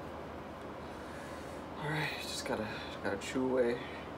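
A banana peel rips softly.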